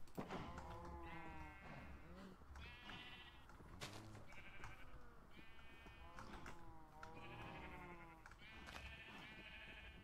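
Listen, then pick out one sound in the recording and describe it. Sheep bleat repeatedly.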